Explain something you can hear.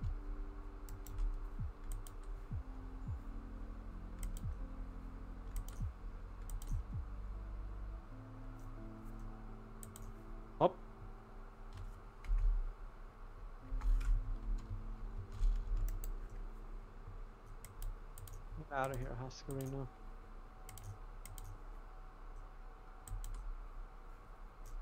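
Soft clicks sound as items are picked up and placed.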